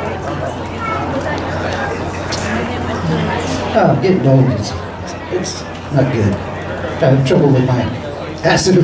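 A live band plays upbeat music with electric guitar and keyboard.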